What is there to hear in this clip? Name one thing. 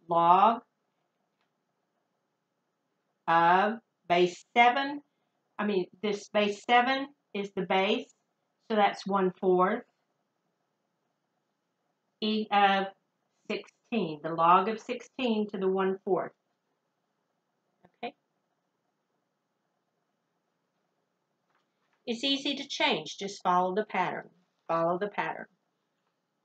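An elderly woman speaks calmly and clearly, close by, with pauses between phrases.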